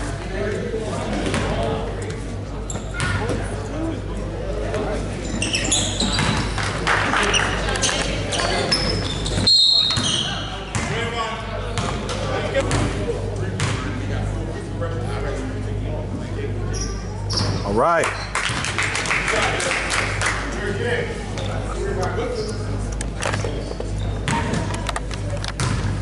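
A crowd of spectators murmurs and calls out.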